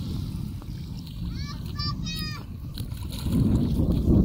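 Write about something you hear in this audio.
Bare feet splash through shallow water.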